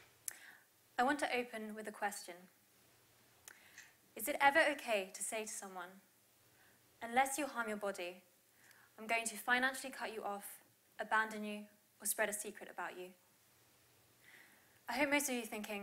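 A young woman speaks calmly through a microphone.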